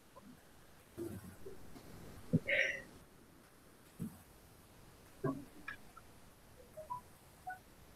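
A young woman speaks briefly through an online call.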